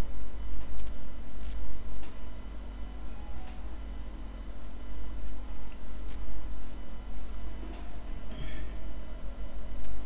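A pencil scratches across paper in quick strokes.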